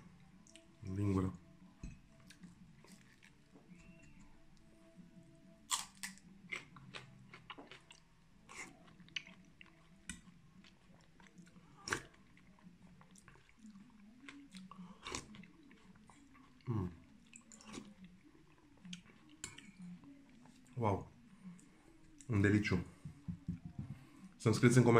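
A man crunches on raw green onion.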